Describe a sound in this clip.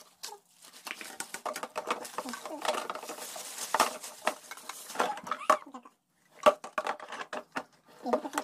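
Plastic toy parts clatter and knock together.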